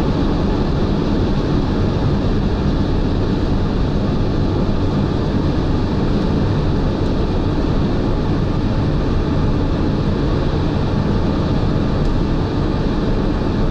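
Wind rushes steadily past a moving car.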